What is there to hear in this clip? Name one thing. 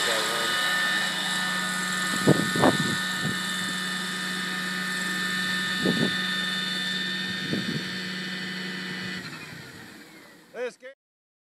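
A model helicopter's engine whines steadily with a high buzz, then fades.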